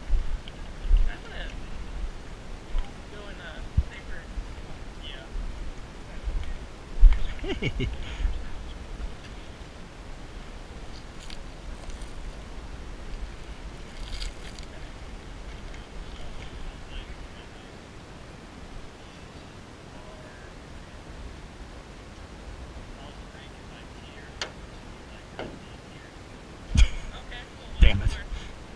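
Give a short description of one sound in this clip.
Men talk outdoors, a few steps away.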